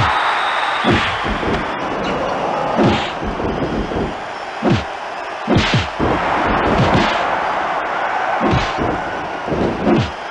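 Heavy punches thud as wrestlers brawl.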